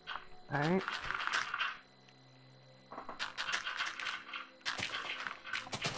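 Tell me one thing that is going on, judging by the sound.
Dirt crunches as blocks are dug away.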